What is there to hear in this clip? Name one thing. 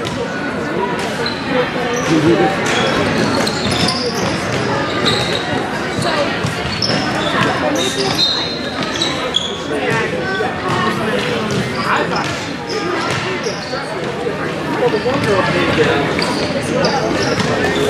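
Sticks clack against a ball on a hard floor.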